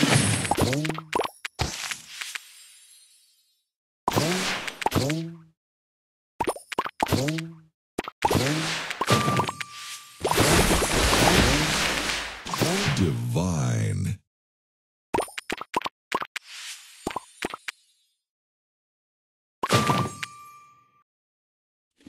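Game sound effects chime and pop as candies match and burst.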